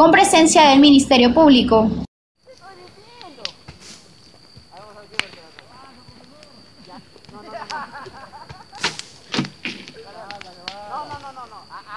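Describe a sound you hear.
Plants crackle as they burn in a fire.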